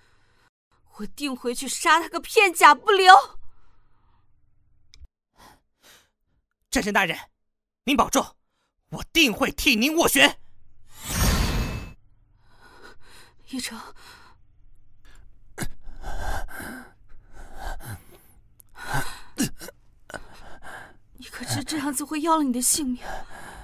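A young woman speaks tearfully and urgently, close by.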